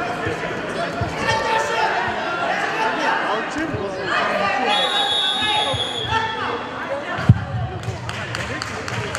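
A crowd of children shouts and cheers in an echoing hall.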